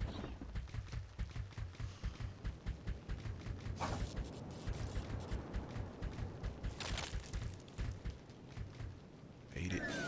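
Quick footsteps patter along as a game character runs.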